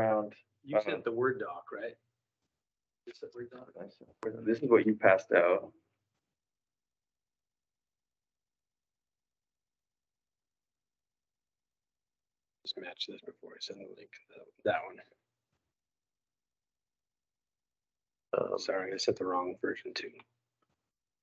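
A man speaks calmly in a room, heard through a microphone, with long pauses.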